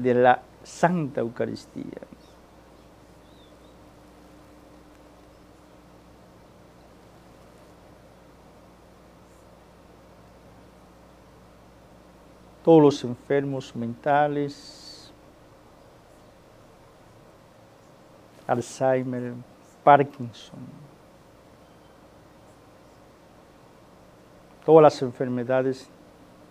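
An elderly man speaks slowly and solemnly into a microphone, with long pauses.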